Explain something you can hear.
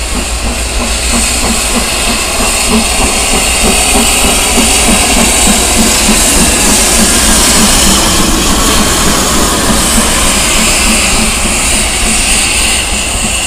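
Steam hisses loudly from a passing locomotive.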